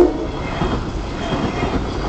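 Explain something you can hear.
A train rumbles past close by.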